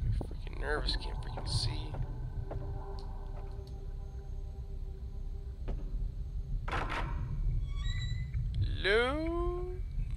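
Footsteps tread slowly on a creaking floor.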